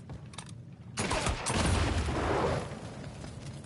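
A fire roars with a loud burst.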